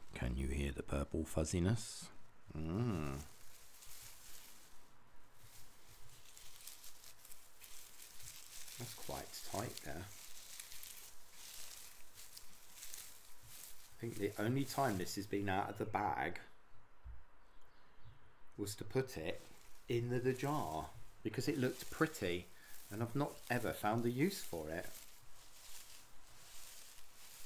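Crinkly shredded plastic rustles and crackles close to a microphone.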